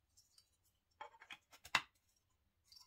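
Plastic parts click and knock together as they are handled.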